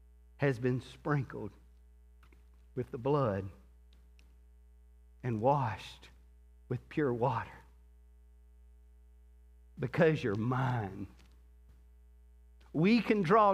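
A man speaks calmly into a microphone in short phrases, with pauses.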